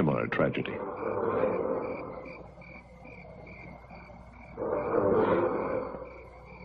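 A man speaks urgently close by.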